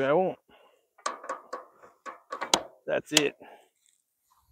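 Metal clinks and rattles as a man works a wire fence tie.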